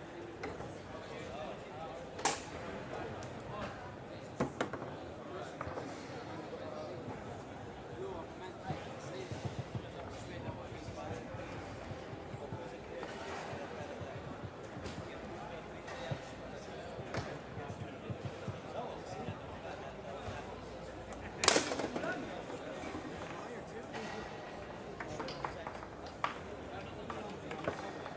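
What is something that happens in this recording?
A foosball ball clacks and bangs against the rods and walls of a table.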